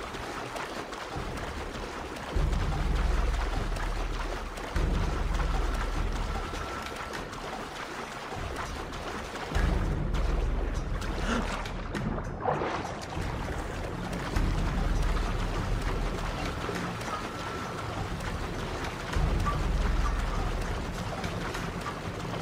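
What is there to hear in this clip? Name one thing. Water splashes as a swimmer strokes quickly through it.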